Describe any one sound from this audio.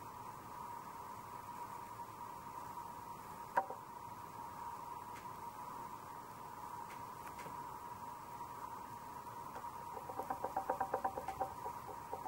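Pastel rubs and scratches softly on paper.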